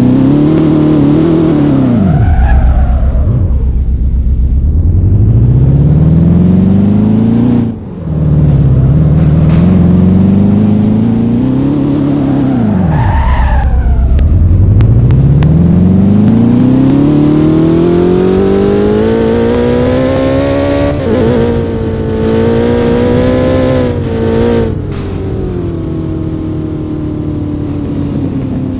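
A sports car engine revs up and down loudly, rising and dropping as gears shift.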